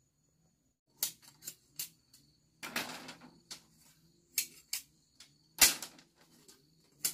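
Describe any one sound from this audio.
Thin bamboo strips clack and rattle as they are handled nearby.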